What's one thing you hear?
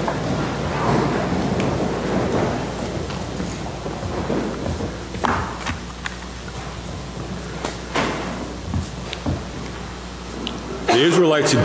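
A man speaks quietly at a distance in an echoing hall.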